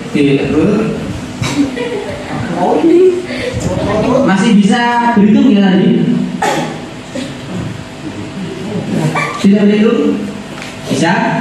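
A young man speaks into a microphone, heard through a loudspeaker in a room.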